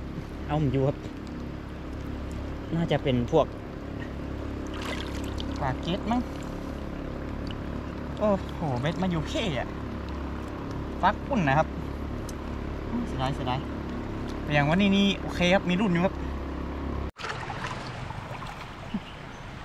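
Water swirls and splashes around a man wading in a river.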